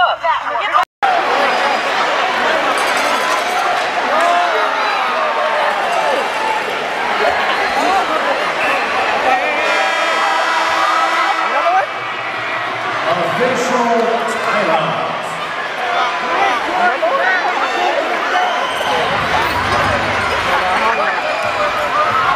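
A crowd cheers and chatters in a large echoing arena.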